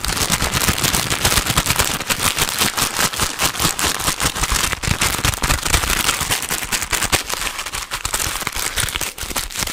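Fingertips tap and scratch on a microphone's foam cover.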